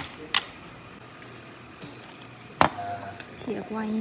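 A plastic lid snaps off a container.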